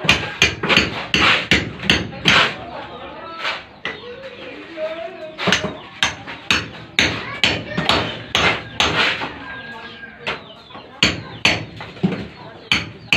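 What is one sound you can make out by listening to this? A hammer strikes a chisel against a concrete wall in sharp, repeated blows.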